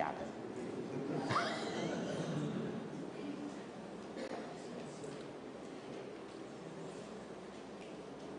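An elderly man laughs heartily into a microphone.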